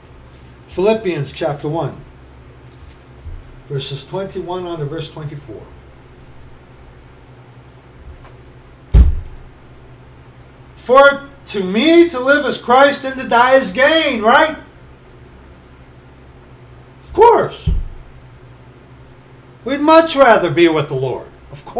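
A middle-aged man talks close to a microphone in short bursts.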